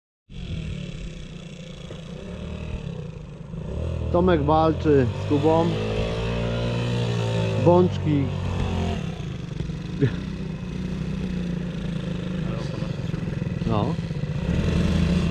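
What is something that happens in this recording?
A dirt bike engine idles close by with a low steady rumble.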